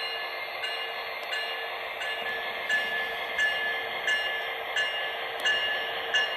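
A locomotive bell rings at an even pace.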